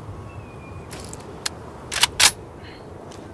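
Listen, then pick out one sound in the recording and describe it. Rifle shots crack loudly a few times.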